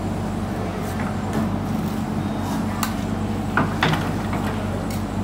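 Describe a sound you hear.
A metal bar strikes and scrapes into dirt and rubble.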